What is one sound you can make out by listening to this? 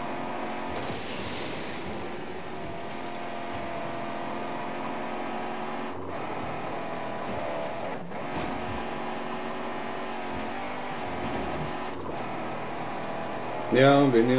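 A car engine roars steadily as it drives fast.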